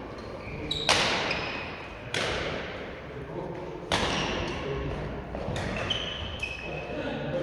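Rackets smack shuttlecocks with sharp echoing pops in a large hall.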